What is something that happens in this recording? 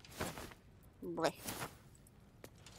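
A cloth sack rustles as it is opened.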